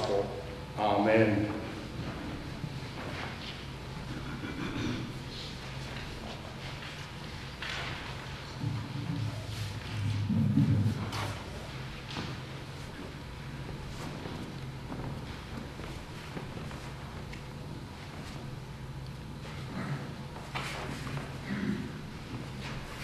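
An elderly man speaks quietly in a large, echoing room, with long pauses.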